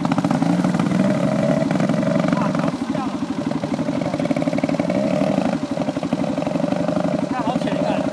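Water splashes under a motorbike's tyres.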